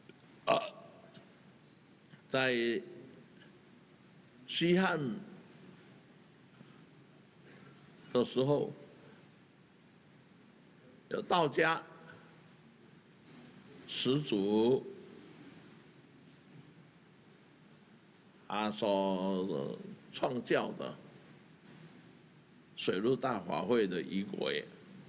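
An elderly man speaks slowly and calmly into a microphone, in short phrases with long pauses.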